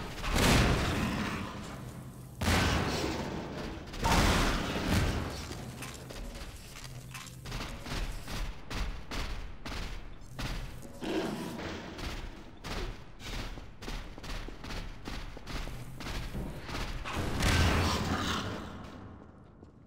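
A gravity gun blasts objects away with heavy booming thumps.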